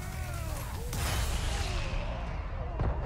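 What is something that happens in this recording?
A flash grenade bursts with a loud bang.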